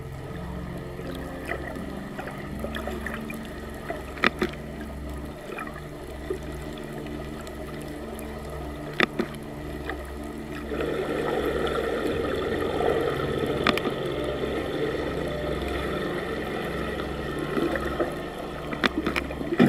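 Water rumbles steadily, heard from underwater.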